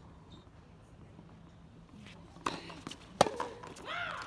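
A tennis ball is struck sharply with a racket.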